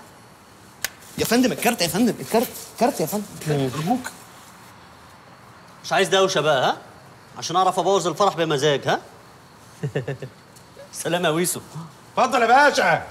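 A man speaks with animation nearby.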